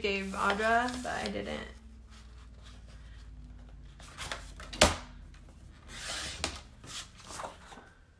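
A paper trimmer blade slides and cuts through paper.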